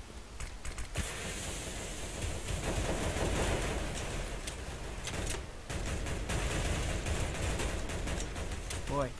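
A smoke grenade hisses steadily as it releases smoke.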